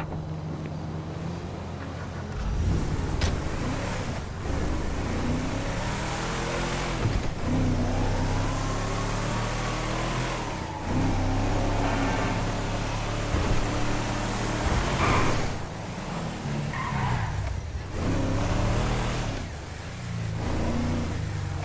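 A truck engine hums and revs as it drives along.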